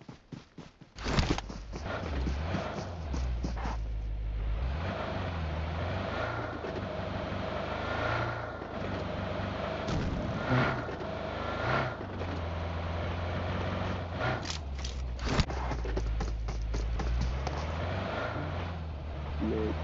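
A car engine starts and rumbles steadily as the car drives.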